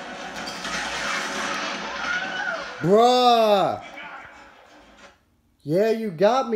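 A video game's sound effects and music play through television speakers.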